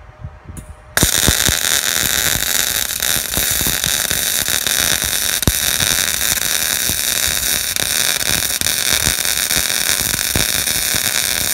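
A welding arc crackles and hisses loudly and steadily.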